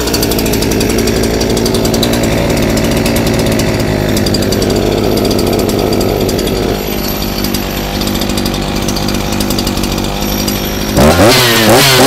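A small chainsaw engine idles steadily nearby.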